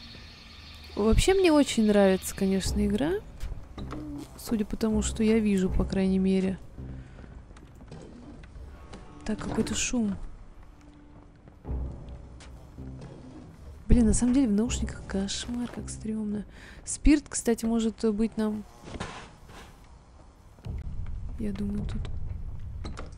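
A young woman talks into a microphone with animation, heard up close.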